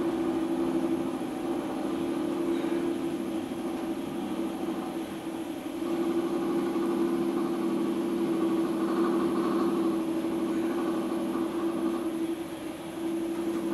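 A potter's wheel hums steadily as it spins.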